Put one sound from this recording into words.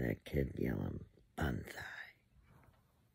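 A middle-aged woman speaks with animation close to the microphone.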